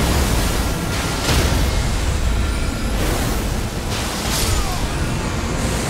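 Magic blasts crackle and boom in a fight.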